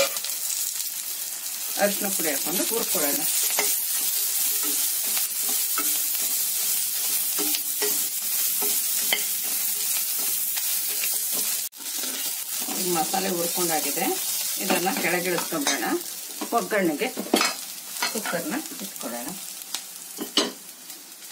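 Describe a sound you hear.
Food sizzles loudly as it fries in hot oil.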